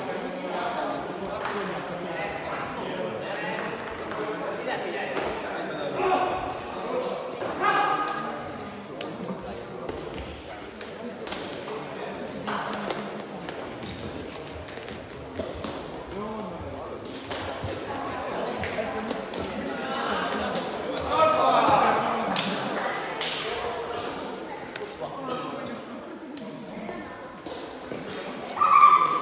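A shuttlecock is struck sharply with rackets again and again.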